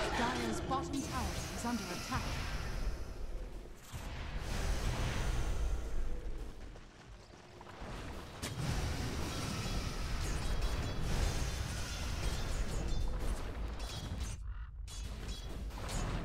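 Magic blasts and weapon hits crackle and thud in a busy game battle.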